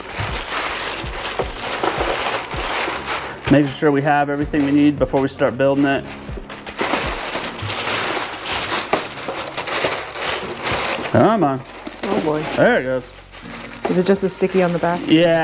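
Plastic film crinkles and rustles as it is handled.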